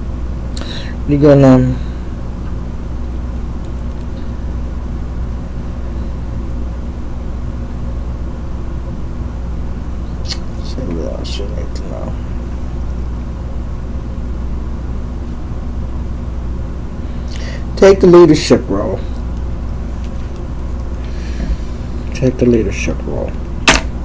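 A man speaks close by in short, low bursts.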